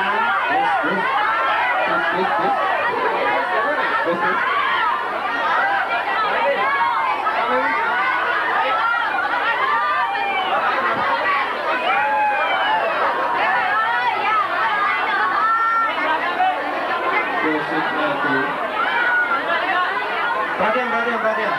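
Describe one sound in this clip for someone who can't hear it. A crowd of young women screams and cheers nearby.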